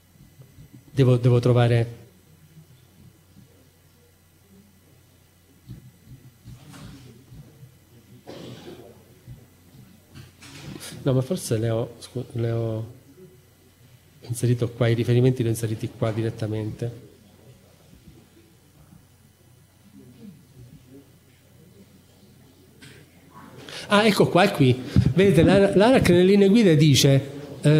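A man speaks calmly into a microphone, in pauses.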